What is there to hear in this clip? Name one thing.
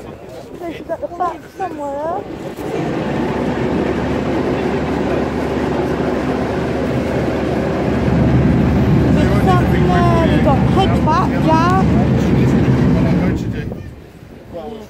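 Motorcycle engines idle and rumble loudly nearby.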